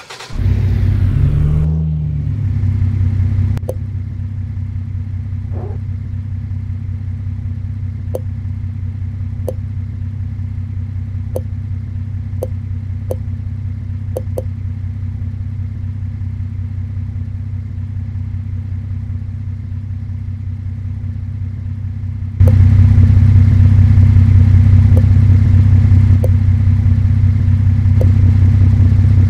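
A van engine idles with a low, steady hum.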